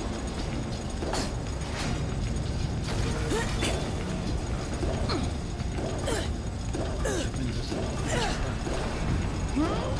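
Bare footsteps land on a metal floor.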